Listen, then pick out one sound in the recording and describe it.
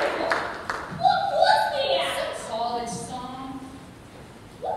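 A woman sings out loudly on a stage in a large echoing hall.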